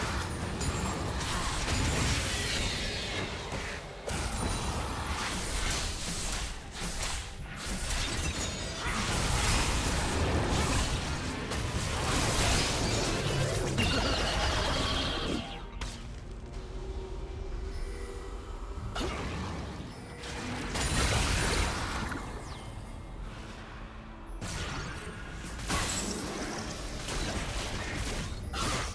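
Fantasy battle effects crackle and burst as magic spells and weapon clashes hit.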